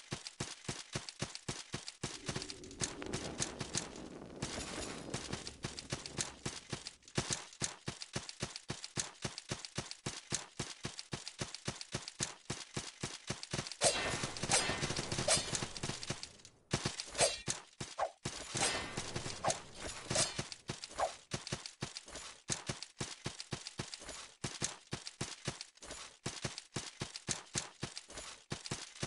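Footsteps thud at a quick, steady pace.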